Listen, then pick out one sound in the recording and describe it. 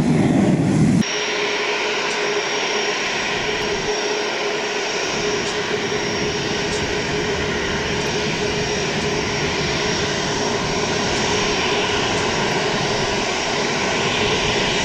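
A jet engine whines and roars steadily as an airliner taxis close by.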